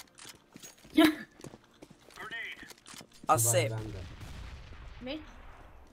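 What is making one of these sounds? Gunshots ring out with a reverberating tail.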